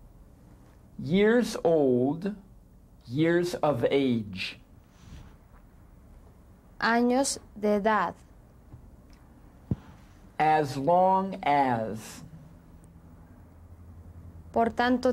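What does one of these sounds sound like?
A middle-aged man speaks slowly and clearly in short phrases, close to a microphone.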